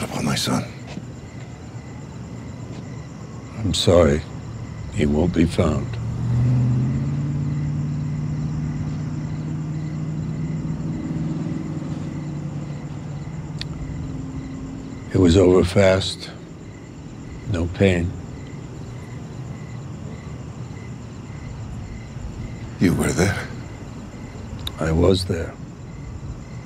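An elderly man speaks quietly and calmly nearby.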